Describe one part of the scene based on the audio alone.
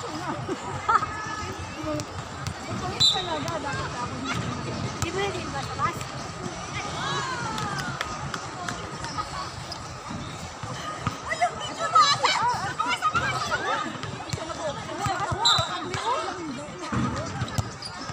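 A volleyball is struck with hands and forearms with sharp slaps.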